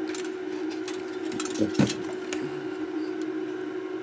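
A rotary dial on a meter clicks as it turns.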